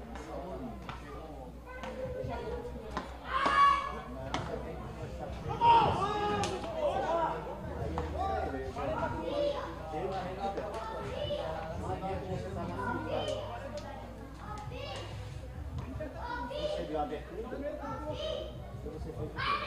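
A crowd of men and women chatters and calls out nearby, outdoors.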